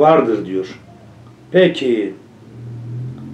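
An elderly man reads aloud in a low voice, close to a microphone.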